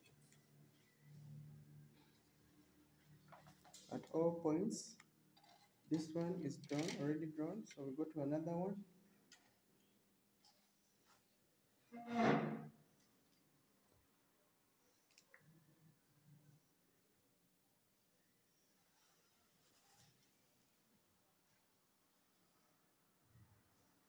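A plastic set square slides and taps on paper.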